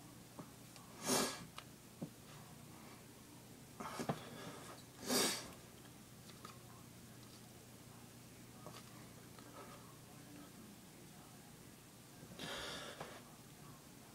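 A man exhales sharply close to the microphone.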